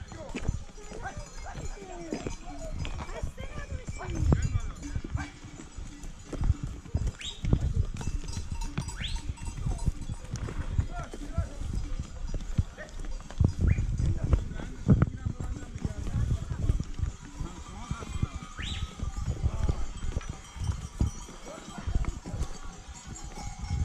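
Hooves clop and scrape on loose stones.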